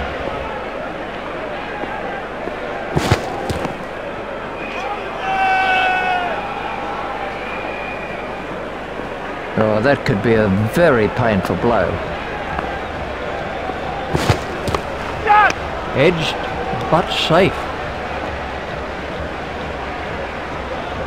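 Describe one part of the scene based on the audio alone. A large crowd murmurs steadily in the distance.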